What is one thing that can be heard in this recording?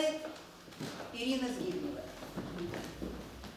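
An older woman speaks calmly in a slightly echoing hall.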